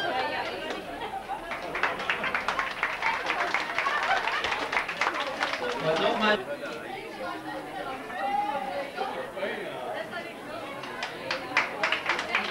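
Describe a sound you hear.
A crowd of men and women chatters loudly all around.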